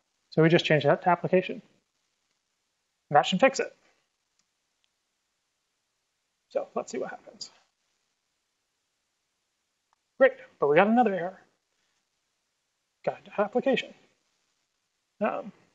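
A man speaks calmly through a microphone, in short bursts with pauses.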